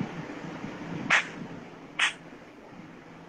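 A young man claps his hands.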